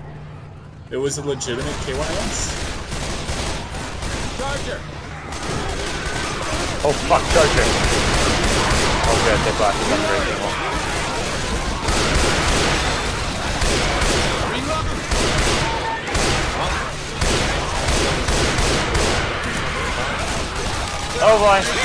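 Zombies snarl and growl close by.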